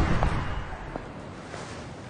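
High heels click on pavement.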